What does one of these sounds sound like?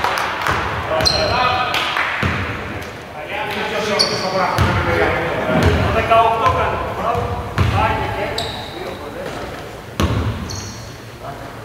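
Men shout and call out to each other across an echoing hall.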